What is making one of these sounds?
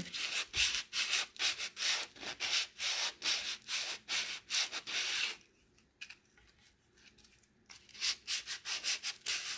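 Sandpaper rubs back and forth over wood in quick, rhythmic strokes.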